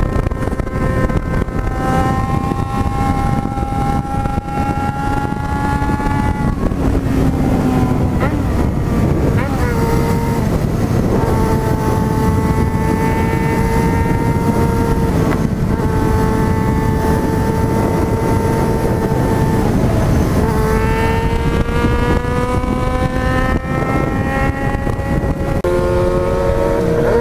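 A motorcycle engine drones steadily, its pitch rising and dropping as the rider shifts gears.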